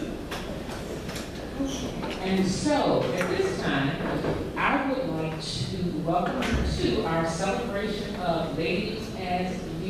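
A woman speaks into a microphone, heard over loudspeakers in an echoing hall.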